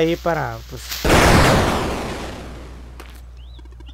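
A loud magical blast whooshes and booms, then fades.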